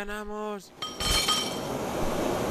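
Glass shatters with a crash.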